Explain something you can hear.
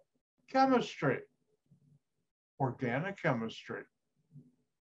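An older man speaks with animation through a microphone on an online call.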